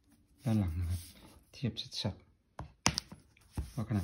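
A tablet is set down on top of another with a soft knock.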